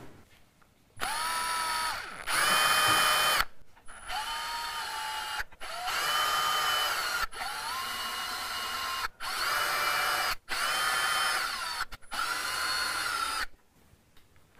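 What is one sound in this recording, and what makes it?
A cordless drill whines in short high bursts, speeding up and slowing down.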